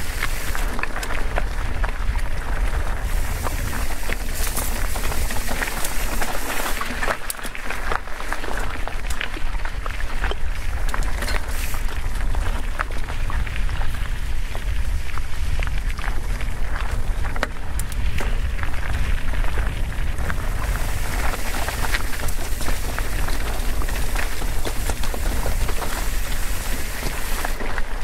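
Bike tyres crunch and rattle over a rocky dirt trail.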